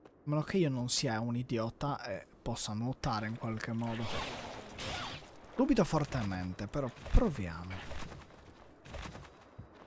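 Swords slash and blows land in a fight.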